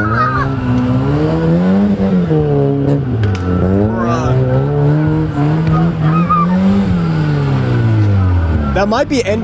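Tyres spin and skid on dry dirt.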